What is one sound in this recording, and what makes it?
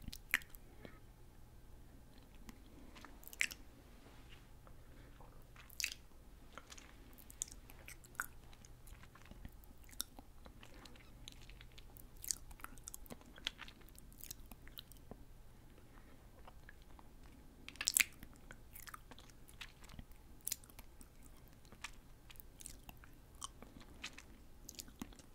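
A young woman whispers softly, very close to a microphone.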